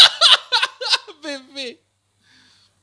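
A young man laughs loudly into a close microphone.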